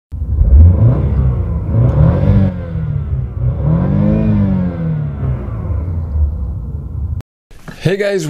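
A car engine idles and revs up and down.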